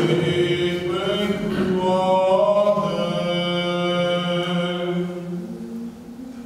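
A man chants in a slow, sustained voice with a light echo.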